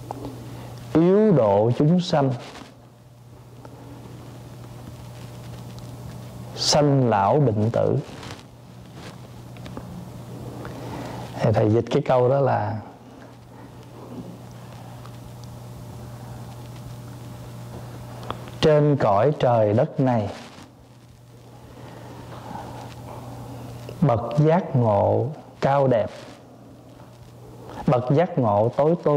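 A middle-aged man chants calmly into a microphone in short bursts with pauses between.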